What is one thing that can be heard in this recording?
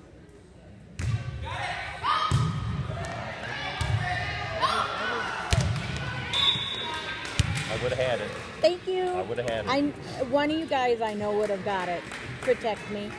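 A volleyball thuds off hands and the floor in a large echoing gym.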